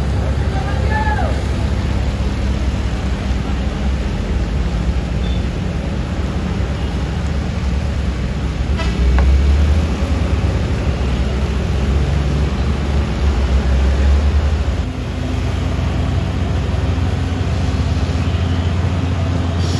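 A motorbike engine buzzes past.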